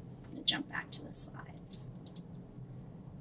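A young woman speaks a few quiet words a short way off in a room.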